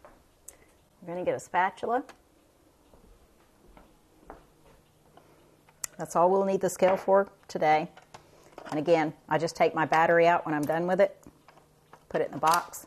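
An older woman speaks calmly and close to a microphone.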